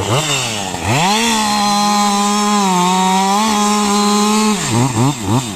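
A chainsaw cuts through a log.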